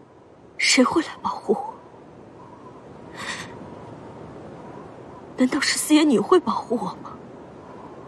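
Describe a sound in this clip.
A young woman speaks softly and tearfully nearby.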